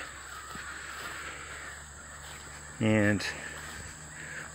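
Leaves rustle softly outdoors.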